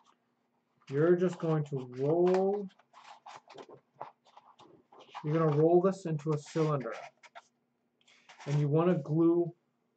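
Paper rustles and crinkles as it is folded.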